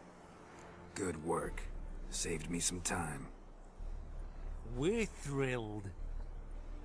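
A man with a deep voice answers briefly, close by.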